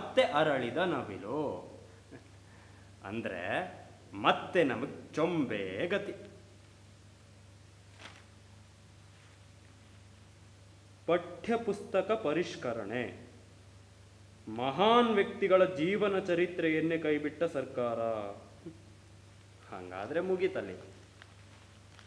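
A young man speaks with feeling.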